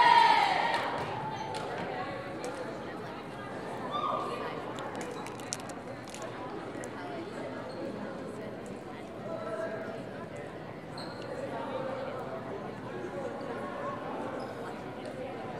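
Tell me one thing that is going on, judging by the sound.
Young women chatter in a huddle.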